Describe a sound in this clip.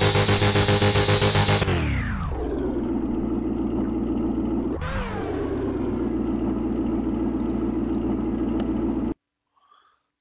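A car engine revs hard, then drops to a steady idle.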